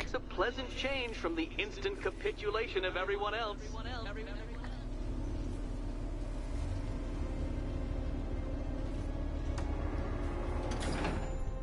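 A vehicle's engine rumbles low and steady.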